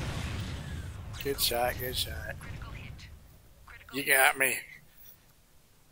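A large explosion booms and crackles.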